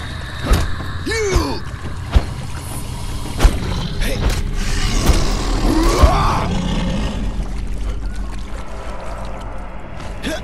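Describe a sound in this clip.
Water sloshes and splashes as a warrior wades through it.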